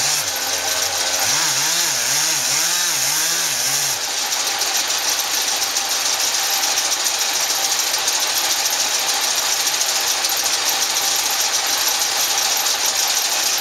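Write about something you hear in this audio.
A chainsaw roars and revs up and down as it cuts into a tree trunk.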